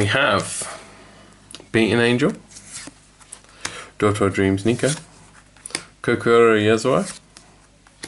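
Trading cards slide and rustle against each other.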